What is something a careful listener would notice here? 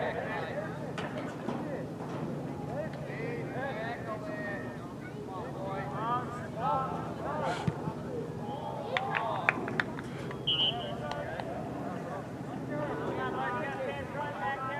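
Teenage boys shout to each other across an open field.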